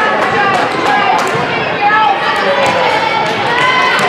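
A volleyball is struck with a hand slap on a serve.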